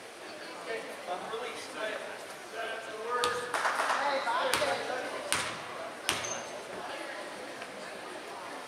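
A crowd of spectators chatters and calls out in an echoing gym.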